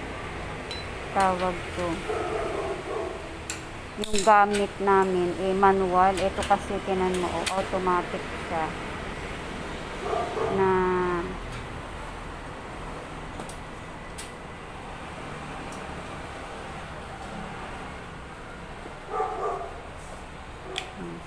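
Metal bicycle parts clink and tap as a bicycle is repaired.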